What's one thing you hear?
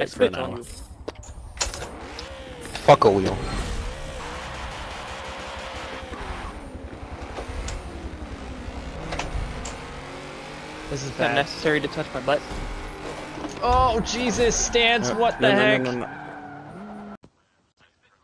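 A racing car engine revs and roars.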